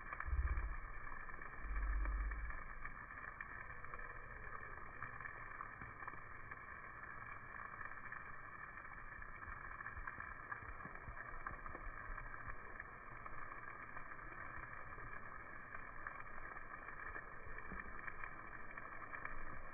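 Meat sizzles and crackles steadily on a charcoal grill.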